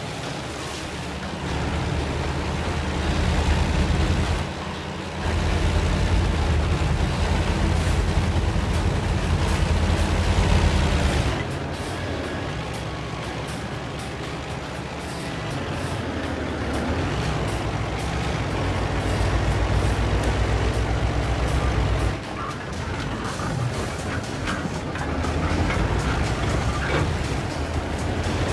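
A tank engine rumbles and roars as the tank drives over rough ground.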